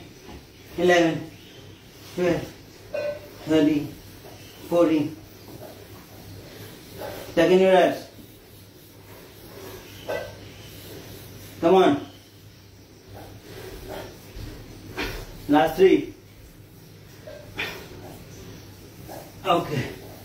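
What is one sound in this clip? A man grunts and breathes out hard with each effort, close by.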